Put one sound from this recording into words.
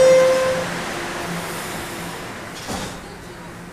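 A subway train's brakes squeal loudly and fade.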